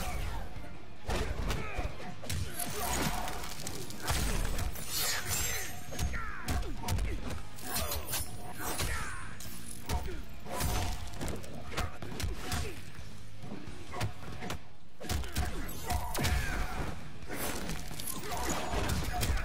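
Punches and kicks land with heavy thuds and cracks.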